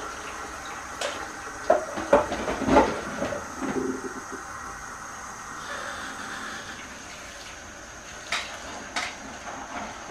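Dishes clink and clatter in a sink.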